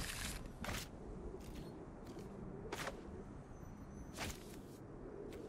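Short digital whooshes sound as cards are played.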